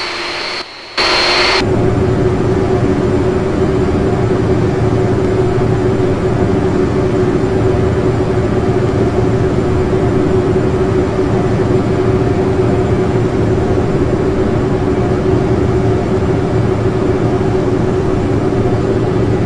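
Jet engines hum with a low steady rumble, heard from inside a cockpit.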